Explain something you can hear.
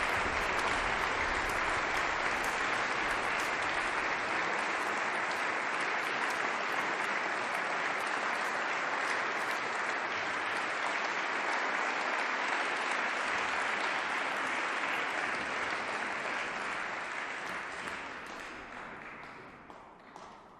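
An audience applauds steadily in a large echoing hall, then the clapping fades away.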